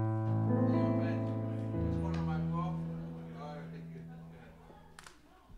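A keyboard plays sustained chords that fade away.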